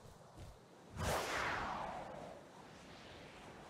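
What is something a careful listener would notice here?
A loud whoosh rushes in and slowly fades.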